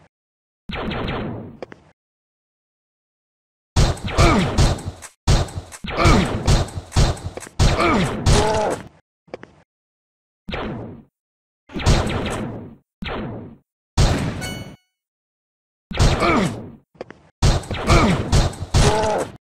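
Guns fire in quick bursts in a video game.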